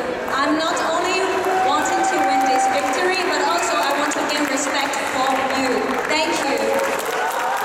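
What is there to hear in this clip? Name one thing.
A young woman speaks calmly into a microphone, heard over loudspeakers in a large echoing hall.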